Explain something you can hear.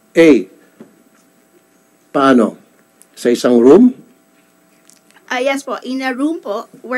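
A woman speaks through a microphone in short, halting phrases.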